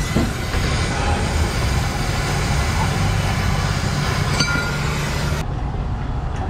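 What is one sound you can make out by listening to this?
A gas torch hisses steadily close by.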